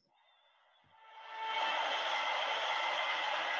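Outdoor street noise rises and then stays steady and loud.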